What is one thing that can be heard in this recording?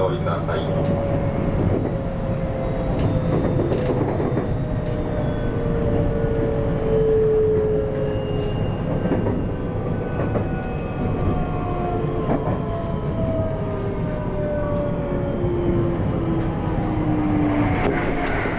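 A train's electric motor whines, slowly falling in pitch as it slows.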